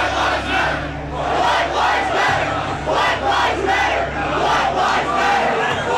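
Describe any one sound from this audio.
A young woman shouts loudly close by.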